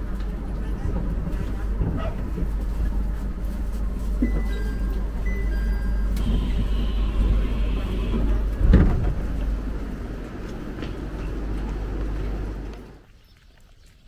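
A train rumbles steadily while standing.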